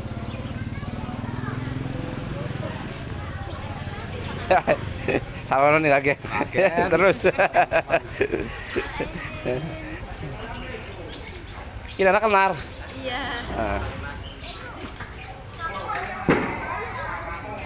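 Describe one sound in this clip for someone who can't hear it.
Women chatter in the background outdoors.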